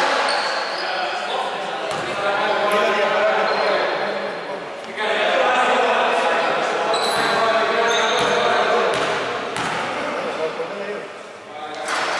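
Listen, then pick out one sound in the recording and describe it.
Men's voices chatter and call out in a large echoing hall.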